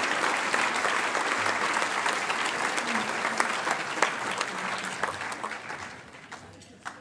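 An audience applauds loudly, then the clapping fades.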